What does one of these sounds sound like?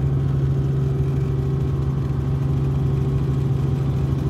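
A helicopter engine drones steadily from inside the cabin.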